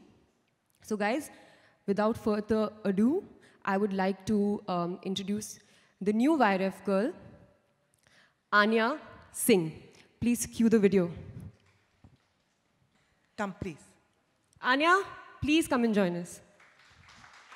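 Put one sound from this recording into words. A young woman speaks calmly into a microphone over loudspeakers in a large hall.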